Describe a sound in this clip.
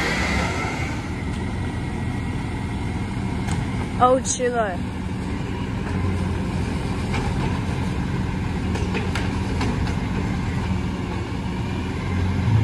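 A truck's engine idles in the distance.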